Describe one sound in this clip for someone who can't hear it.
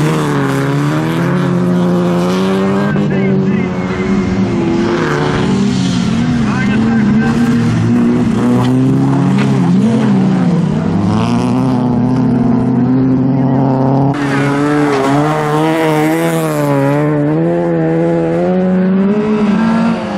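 Racing car engines roar and rev hard as the cars slide through corners.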